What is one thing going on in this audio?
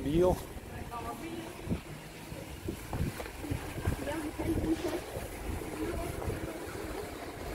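A young boy talks close to a phone's microphone.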